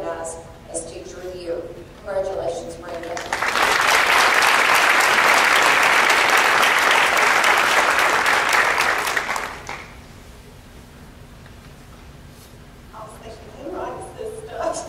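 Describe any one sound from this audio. A woman speaks calmly through a loudspeaker in a large echoing hall.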